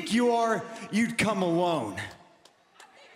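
A man speaks into a microphone in a slow, menacing voice.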